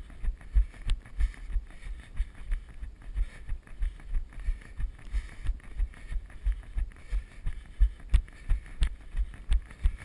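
Bicycle tyres roll and bump over a bumpy dirt trail.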